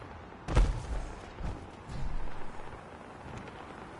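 A heavy melee weapon thuds against something several times.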